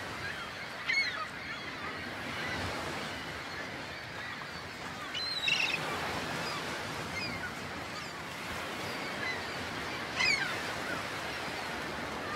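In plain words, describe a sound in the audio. A soft wind blows outdoors through grass.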